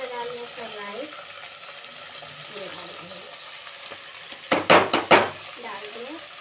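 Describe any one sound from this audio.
Dry rice pours and rustles into a pot.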